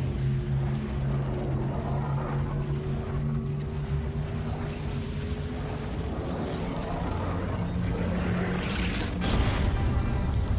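A machine hums with a steady low drone.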